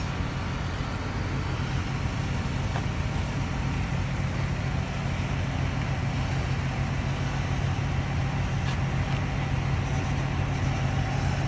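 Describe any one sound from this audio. A truck engine idles nearby with a steady low rumble.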